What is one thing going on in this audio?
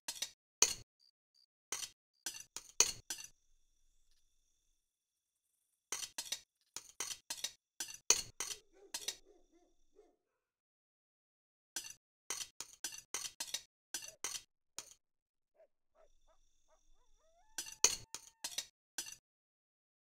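A fork clinks against a plate in quick bursts.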